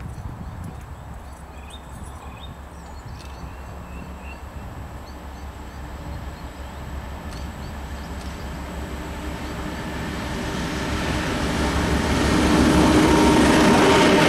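A freight train approaches with a deep diesel engine rumble, growing louder.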